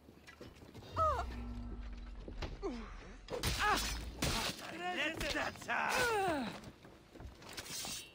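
Men grunt and shout loudly nearby.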